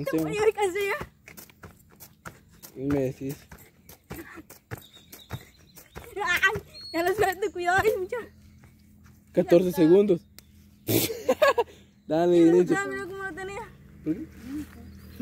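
A boy talks excitedly close by.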